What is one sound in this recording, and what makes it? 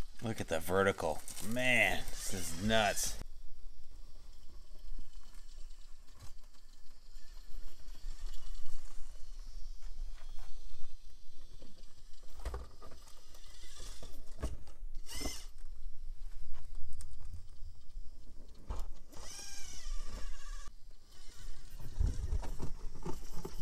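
Rubber tyres scrape and grind on rock.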